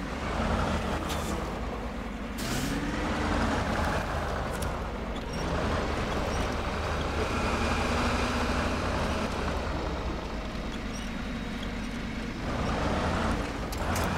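A heavy truck engine rumbles and strains, revving up and down.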